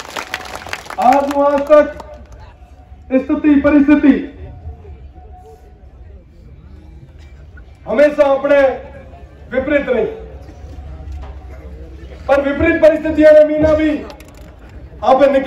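A young man speaks forcefully through a loudspeaker microphone, with pauses between phrases.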